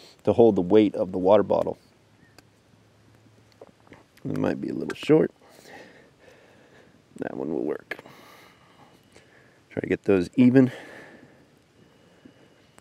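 A smouldering fire crackles faintly.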